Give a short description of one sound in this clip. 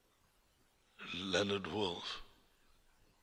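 A man speaks calmly through a telephone receiver.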